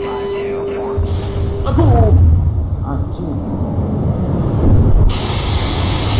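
An explosion booms and rumbles low.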